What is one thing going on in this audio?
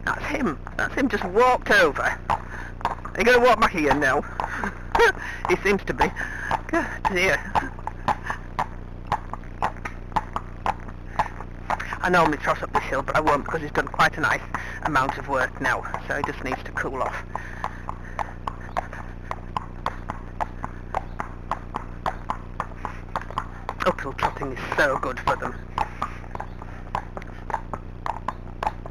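A horse's hooves clop steadily on a paved lane.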